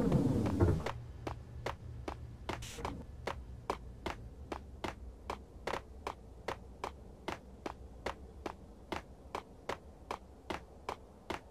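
Footsteps slap quickly on a hard floor.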